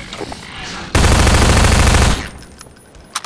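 Rapid gunfire blasts loudly.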